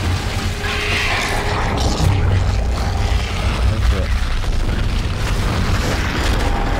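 A deep rumble drones steadily.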